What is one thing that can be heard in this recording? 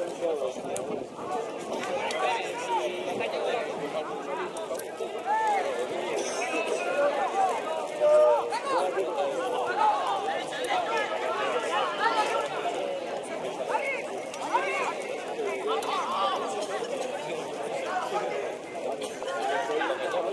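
Distant footballers shout to each other across an open pitch outdoors.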